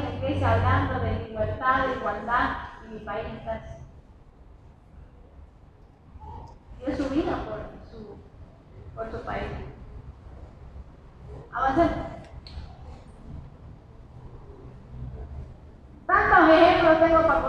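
A woman speaks with animation into a microphone over a loudspeaker, outdoors.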